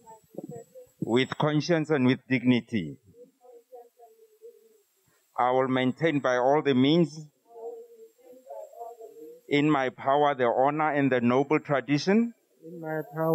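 A man speaks loudly in short bursts outdoors.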